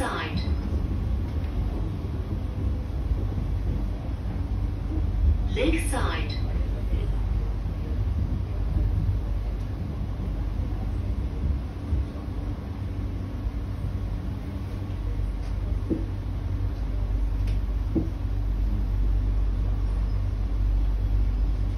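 An electric metro train rumbles along the track, heard from inside the car.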